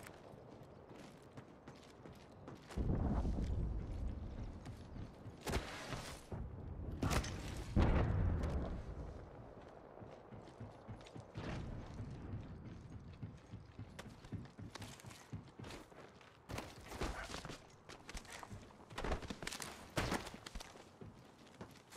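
Quick footsteps patter on a hard surface.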